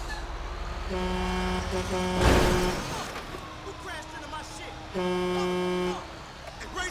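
A fire truck horn blasts twice.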